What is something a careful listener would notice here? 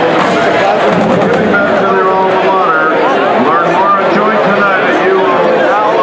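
A marching band plays loudly with brass and drums in a large open stadium.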